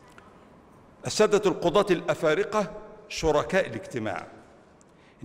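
An elderly man speaks formally into a microphone.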